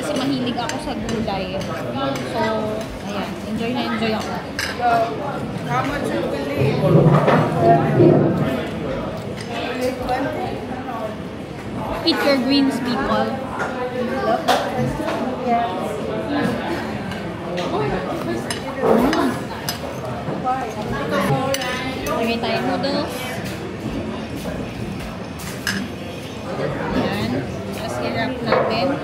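Diners chatter in the background.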